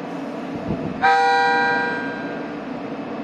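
A train sounds a short, sharp horn blast.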